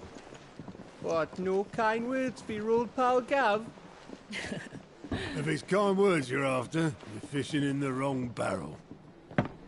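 A young man answers with animation, close by.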